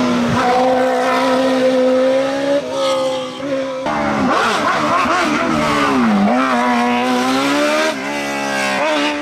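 A racing car engine roars loudly at high revs.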